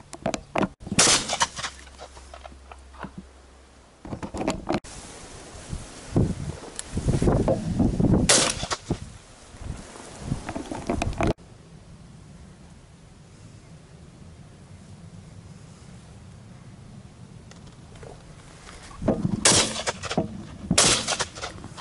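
A shotgun fires loudly close by.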